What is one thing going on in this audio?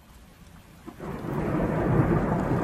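Thunder rumbles loudly.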